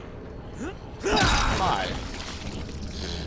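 A heavy weapon strikes a body with a loud thud.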